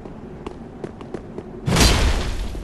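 Footsteps clank in armour on stone.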